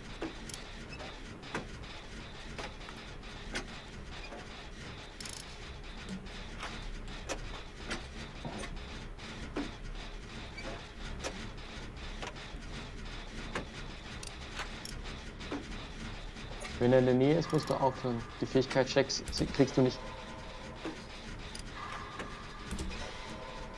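Metal parts clatter and click as an engine is worked on by hand.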